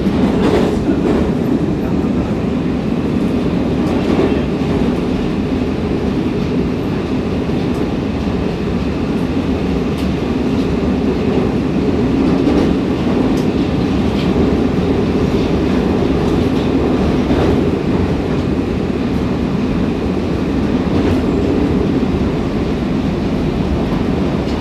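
A metro train rumbles through a tunnel, heard from inside the car.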